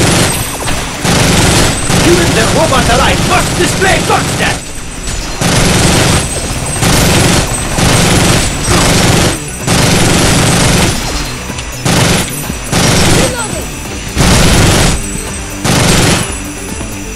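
A heavy machine gun fires in long rapid bursts.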